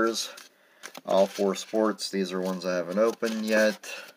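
Plastic-sleeved cards rustle and click as a hand handles them.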